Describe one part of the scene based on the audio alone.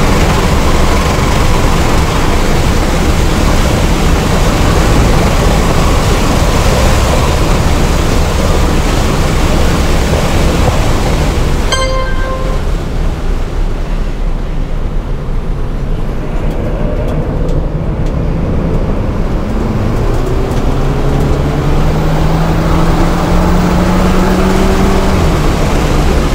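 A turbocharged four-cylinder car engine roars at full throttle, heard from inside the cabin, rising in pitch as it accelerates.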